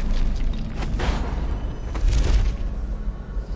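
A low magical whoosh swells and fades.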